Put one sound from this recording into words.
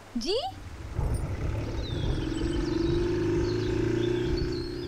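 A motorcycle engine rumbles and pulls away.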